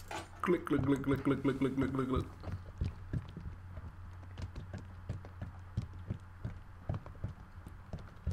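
Oil glugs as it pours from a can.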